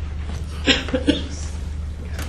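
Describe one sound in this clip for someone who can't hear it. Papers rustle close to a microphone.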